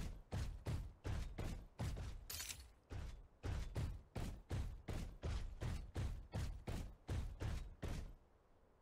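A mech walks with heavy, rhythmic metallic stomps.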